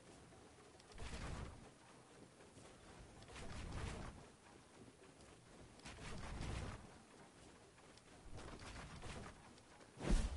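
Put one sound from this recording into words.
Wooden building pieces thud and clatter into place in quick bursts.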